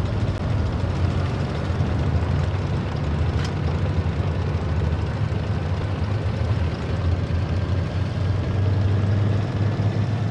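A heavy tank engine rumbles steadily as the tank drives along.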